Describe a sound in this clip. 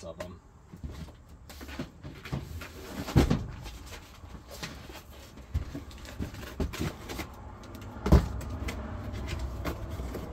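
Footsteps thud and shuffle on a wooden floor.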